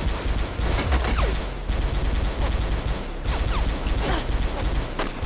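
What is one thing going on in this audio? Bullets strike a wall and ricochet with sharp whines.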